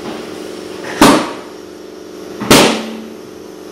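Metal tools clank sharply against a wheel rim.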